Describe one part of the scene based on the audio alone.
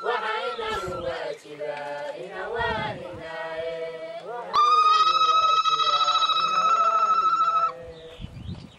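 A group of men and women sing together outdoors.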